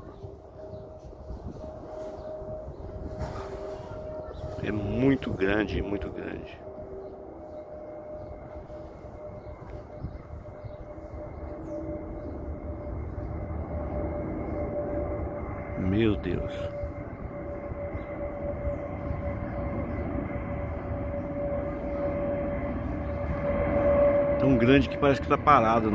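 A jet plane's engines roar overhead, growing steadily louder as it approaches.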